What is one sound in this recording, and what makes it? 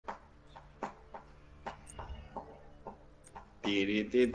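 Short interface clicks sound as menus change.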